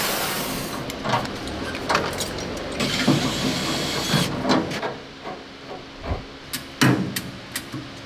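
Metal tools clank against a steel frame.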